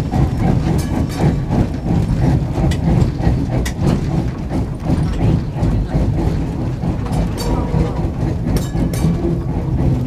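Tram wheels clatter and squeal on the rails.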